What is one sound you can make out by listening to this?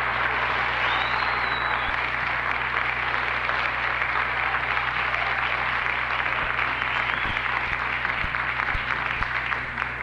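Cymbals shimmer and crash in a fast drum solo.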